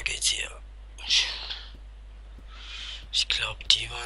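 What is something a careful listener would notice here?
Footsteps tread across a wooden floor.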